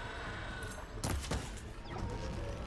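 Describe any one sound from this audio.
Energy bolts fire and crackle in bursts.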